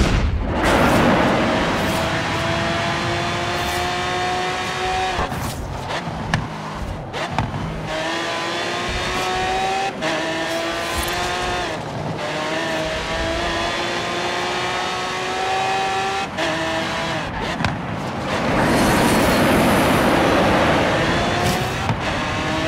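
A sports car engine roars and climbs in pitch, dropping with each gear change.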